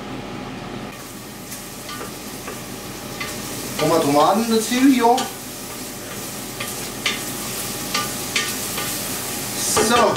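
A spoon scrapes and clinks against a metal pot.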